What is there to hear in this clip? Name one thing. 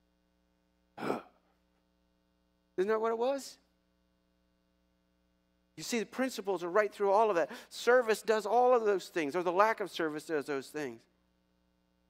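A middle-aged man speaks calmly into a microphone, with pauses.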